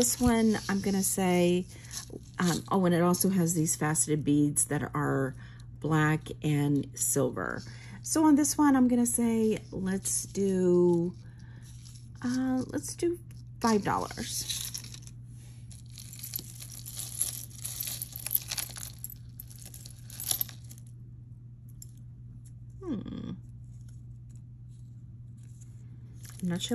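Metal chains and beads jingle and clink softly as hands handle them.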